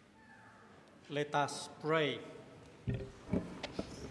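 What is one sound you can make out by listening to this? A middle-aged man speaks calmly through a microphone in an echoing room.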